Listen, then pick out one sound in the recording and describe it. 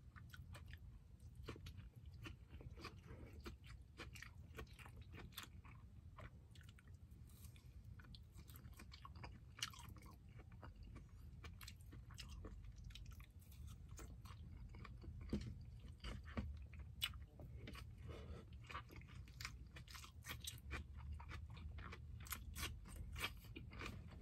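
A man slurps and smacks his lips while eating.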